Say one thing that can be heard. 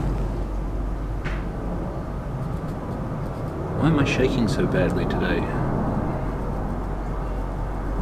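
A marker pen squeaks faintly across a metal surface.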